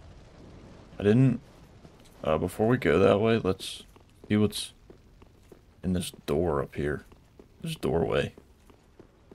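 A man talks into a close microphone with animation, in short bursts.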